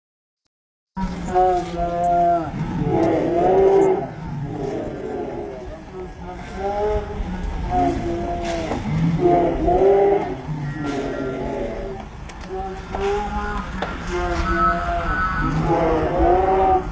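A crowd of men and women chants loudly in unison close by, outdoors.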